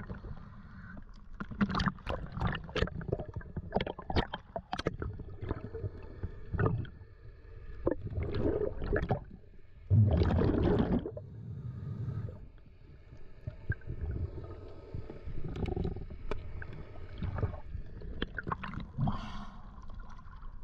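Waves slosh and lap against a microphone at the water's surface.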